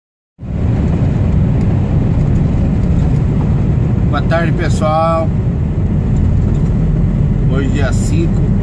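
Wind rumbles loudly against a moving vehicle.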